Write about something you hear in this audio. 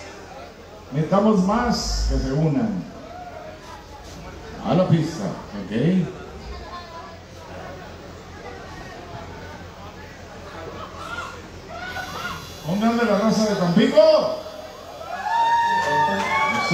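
A man sings loudly into a microphone through loudspeakers.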